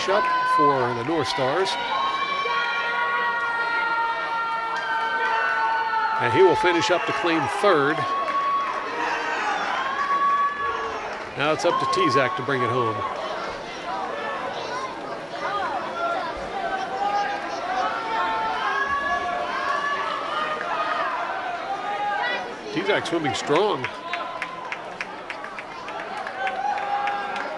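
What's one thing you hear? A crowd of young people cheers and shouts loudly in an echoing hall.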